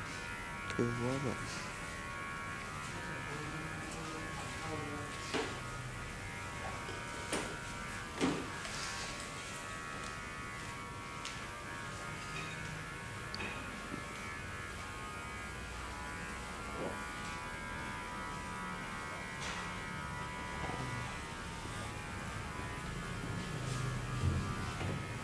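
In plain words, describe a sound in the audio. Thin metal tools scrape softly inside an ear.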